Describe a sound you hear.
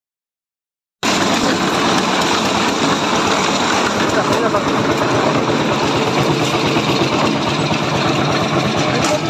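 A concrete mixer drum rumbles and churns loudly.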